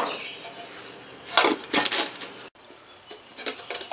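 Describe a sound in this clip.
A metal lid clanks onto a can.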